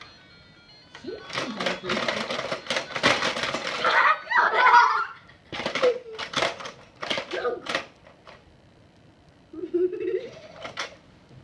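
A young boy laughs and shouts with excitement nearby.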